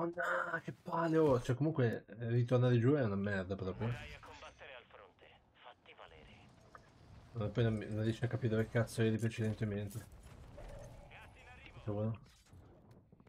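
A young man talks with animation through a microphone.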